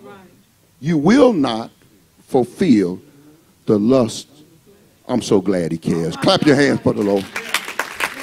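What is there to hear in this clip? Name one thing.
A man preaches with animation through a microphone and loudspeaker.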